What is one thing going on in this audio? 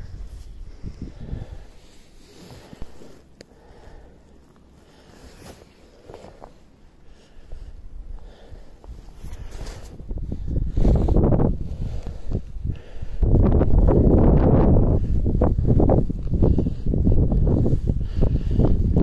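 Strong wind buffets the microphone outdoors, growing louder and gustier.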